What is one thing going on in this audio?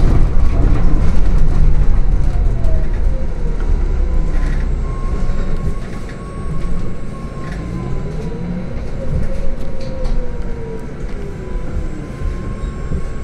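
An electric drive motor of a hybrid city bus whines, gliding down in pitch as the bus slows and then rising again.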